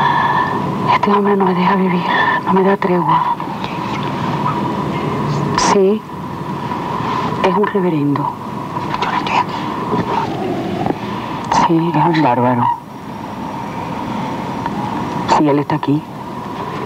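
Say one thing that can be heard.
A woman talks on the phone with animation, close by.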